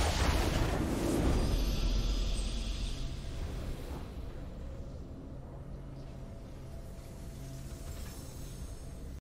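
A triumphant fanfare swells and fades.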